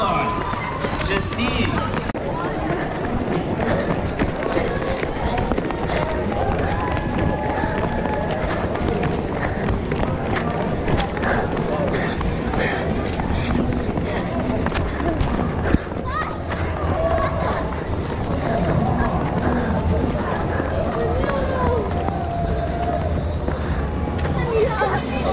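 A crowd of children and adults chatter and shout outdoors.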